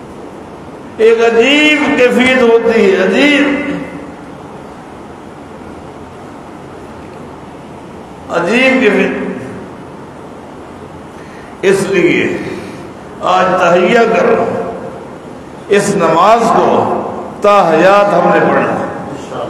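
A middle-aged man speaks calmly into a clip-on microphone, pausing between phrases.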